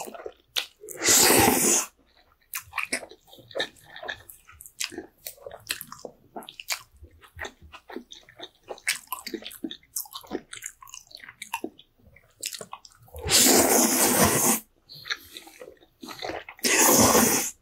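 A man slurps noodles loudly, close up.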